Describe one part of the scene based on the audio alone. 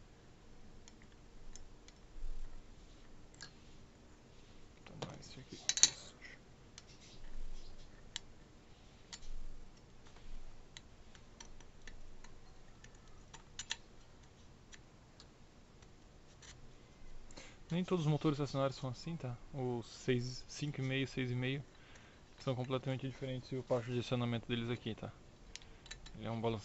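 Small metal parts click and clink as they are handled.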